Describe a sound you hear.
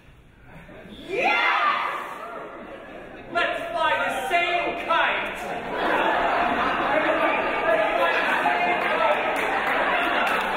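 A group of young people cheer and shout in a large echoing hall.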